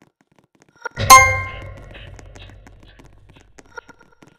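A bright video game chime rings out and fades as a scan succeeds.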